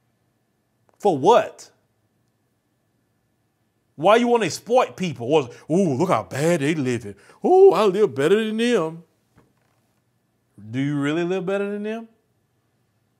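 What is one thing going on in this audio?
A man speaks with animation, close to a microphone, in short bursts with pauses.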